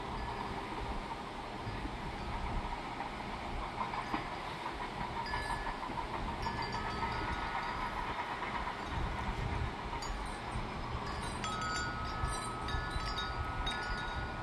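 Bamboo wind chimes clack softly in the breeze.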